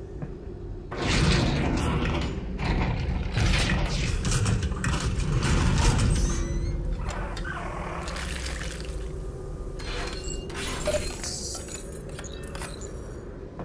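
A machine whirs and clicks as it works.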